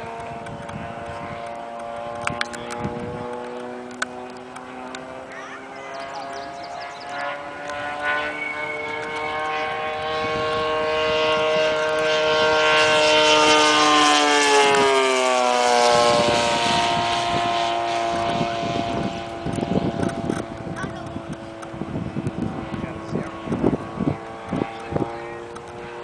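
A propeller plane's engine drones overhead, swelling loud as it passes close and then dropping in pitch as it flies away.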